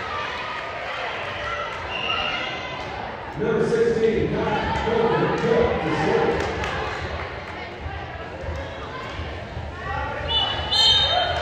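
A volleyball is hit with sharp smacks.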